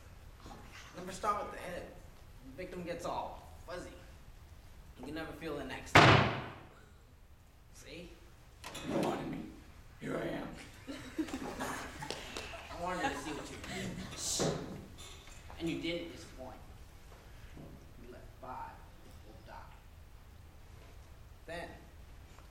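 A young man speaks with animation across an echoing hall.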